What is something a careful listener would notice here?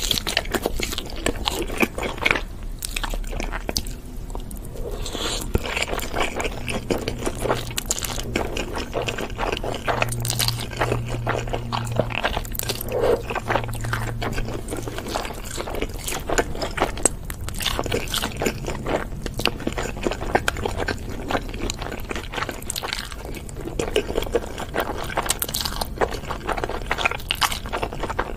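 A young woman chews food wetly and close up.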